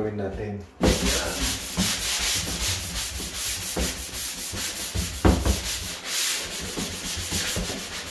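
A sanding block scrapes rhythmically back and forth across a wall, loud and close.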